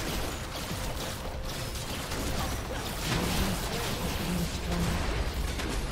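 Magic spells crackle and burst in a busy fight.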